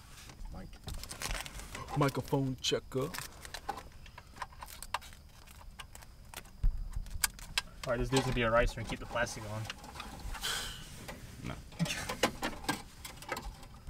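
Plastic parts and wires rustle and click as they are handled.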